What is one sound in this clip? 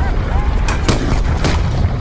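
A loud magical blast whooshes and crackles.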